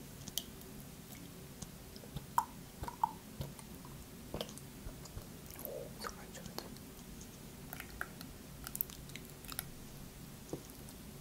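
Liquid pours from a carton into a glass, trickling softly.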